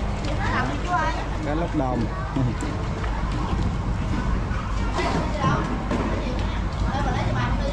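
Live fish splash and wriggle in shallow water.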